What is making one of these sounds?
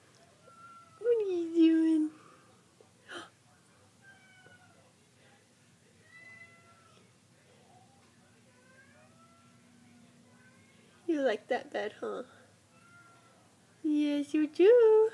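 A cat meows loudly and plaintively.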